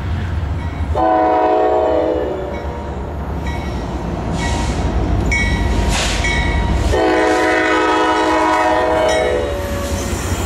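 A train horn blares loudly in long blasts.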